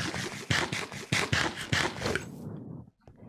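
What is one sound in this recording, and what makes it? Footsteps tread softly on grass and dirt.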